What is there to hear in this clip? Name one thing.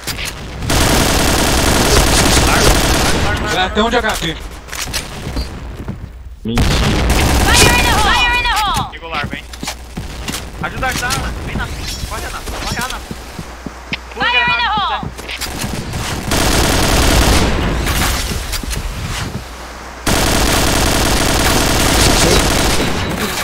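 Rapid gunfire rattles in bursts.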